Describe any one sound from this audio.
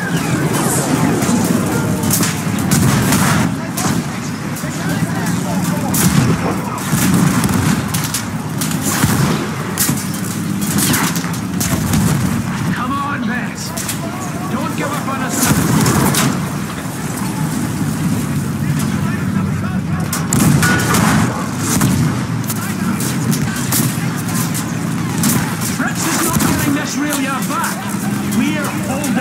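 Guns fire in loud, sharp blasts.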